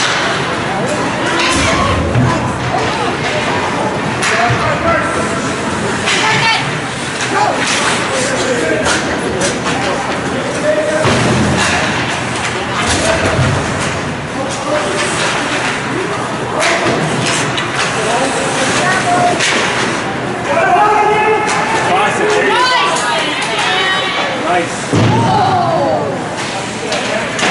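Young players and spectators shout and call out in an echoing rink.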